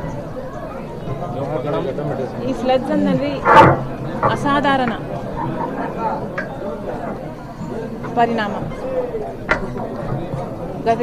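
A woman speaks firmly into microphones close by.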